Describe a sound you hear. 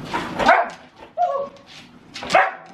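A dog howls briefly.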